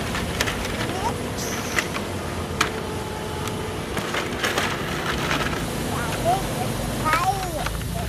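A plastic toy combine harvester rattles and clicks as it is pushed over bricks.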